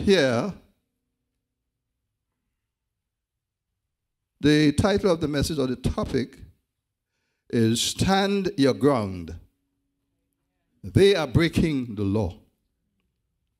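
A man speaks through a microphone in short, forceful phrases with long pauses between them.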